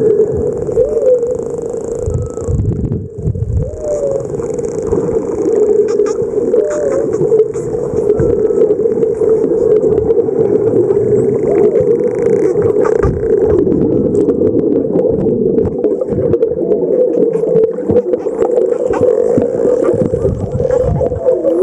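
Dolphins click rapidly underwater.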